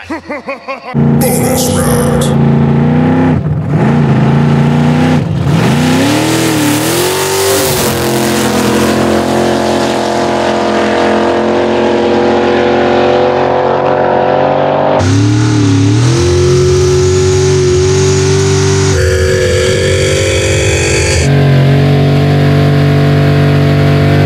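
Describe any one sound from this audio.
Powerful car engines roar and rev loudly.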